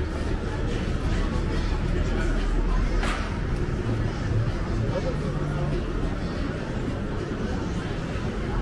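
A crowd of people chatter at a distance outdoors.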